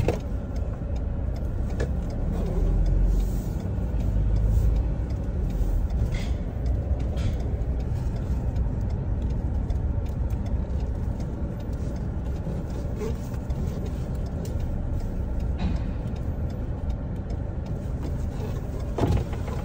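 A car engine hums steadily from inside the car as it drives slowly.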